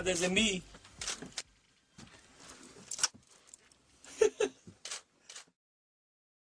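Young men talk and laugh.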